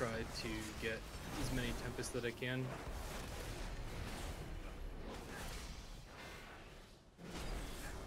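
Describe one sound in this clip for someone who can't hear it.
Spell effects crackle and flash in a fast game battle.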